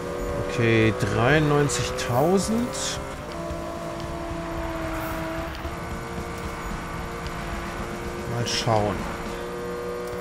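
A sports car engine roars at high speed, revving up and down as gears shift.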